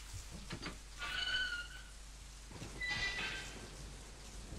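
A heavy metal gate creaks open.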